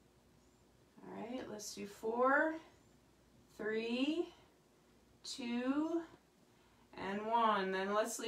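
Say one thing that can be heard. A woman speaks close by in short, drawn-out bursts with pauses between them.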